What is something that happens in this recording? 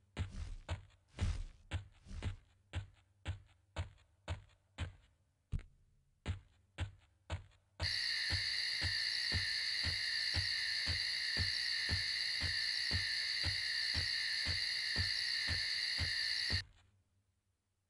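Footsteps thud steadily on soft ground.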